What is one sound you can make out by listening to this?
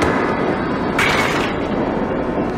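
A bowling ball crashes into pins, knocking them over.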